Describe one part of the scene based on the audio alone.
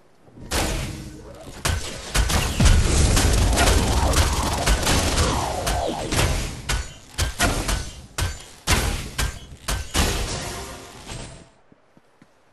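Game weapons clash and blast in rapid bursts of combat.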